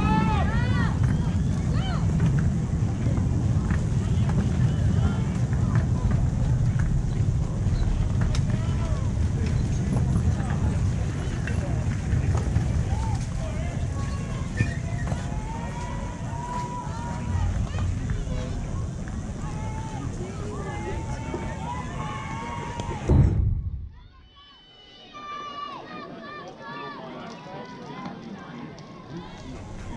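Children and adults call out and cheer outdoors.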